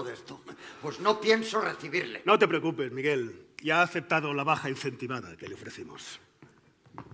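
A man speaks loudly and with feeling on a stage, in a room with a slight echo.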